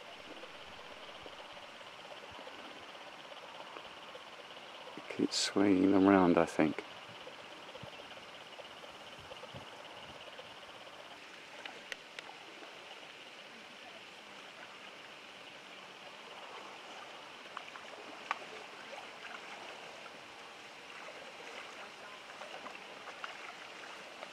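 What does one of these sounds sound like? Paddles dip and splash softly in calm water.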